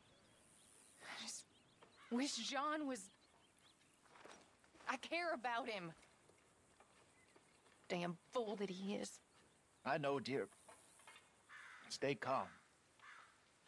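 A woman speaks softly and sadly.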